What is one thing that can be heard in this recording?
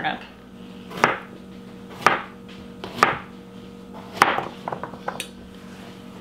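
A knife chops through a firm vegetable with sharp knocks.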